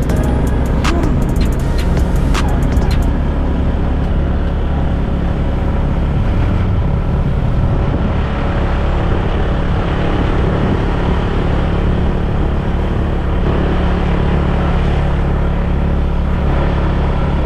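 Wind rushes past in a steady roar.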